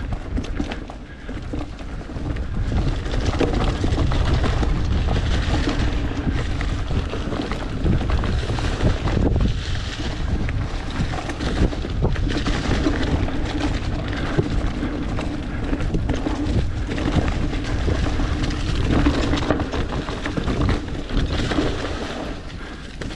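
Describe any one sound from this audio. Bicycle tyres rumble and crunch over a dry dirt trail.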